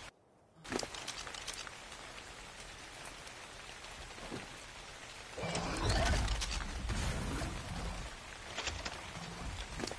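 Footsteps in metal armour crunch over grass.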